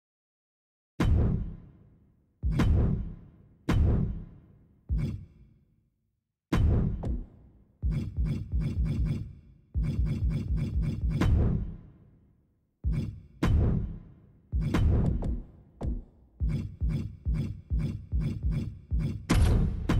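Short electronic swooshes play again and again, each fading out quickly.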